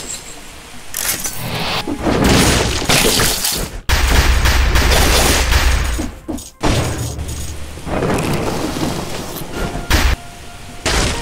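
Video game combat sounds crash and burst in rapid bursts.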